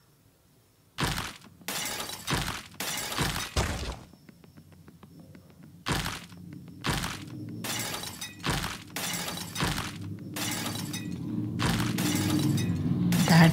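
Chiming mobile game sound effects play as coins and stars are collected.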